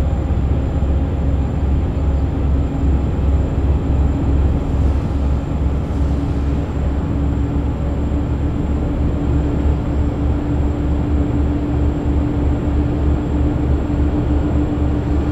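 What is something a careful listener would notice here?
A truck engine drones steadily while driving on a highway.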